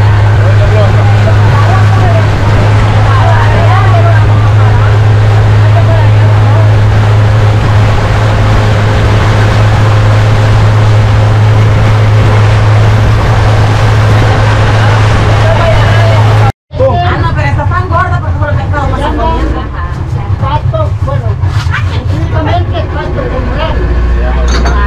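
A boat motor drones steadily.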